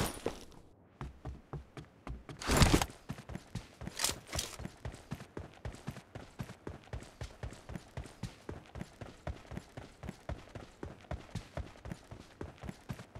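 Quick footsteps thud steadily on the ground.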